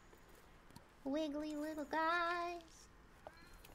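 A young woman calls out in a high, sing-song voice through a microphone.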